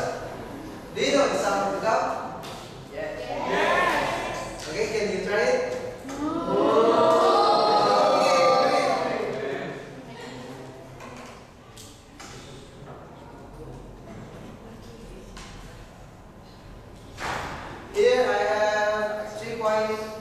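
A young man speaks to a class in a room with a slight echo, pausing now and then.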